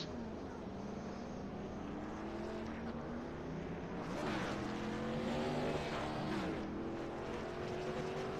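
Racing car engines drone and whine as cars speed past.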